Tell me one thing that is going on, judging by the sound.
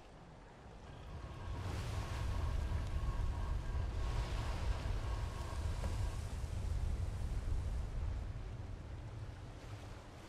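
Water churns and rumbles as something heavy rises from below.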